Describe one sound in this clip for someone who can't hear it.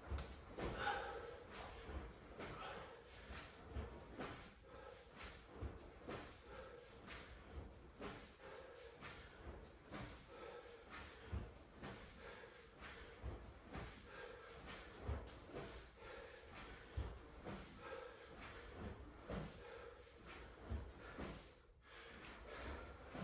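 A young man breathes out hard with each repetition.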